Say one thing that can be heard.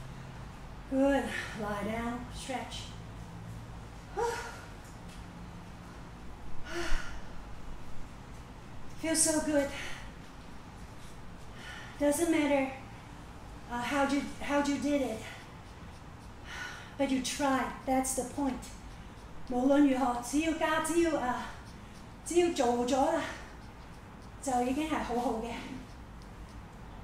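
A woman speaks slowly and calmly, with long pauses.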